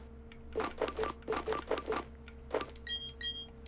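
Short electronic menu blips tick in quick succession.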